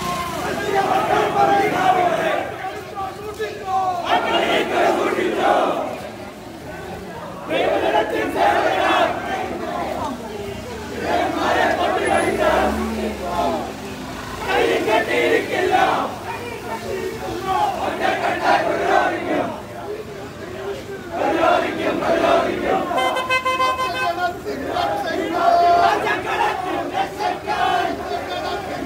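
A crowd of young men chants slogans loudly in unison, outdoors.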